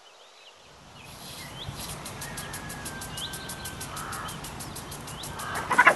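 A lawn sprinkler hisses and ticks as it sprays water.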